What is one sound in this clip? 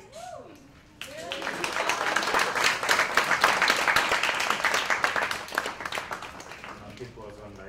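An audience applauds and cheers in a room.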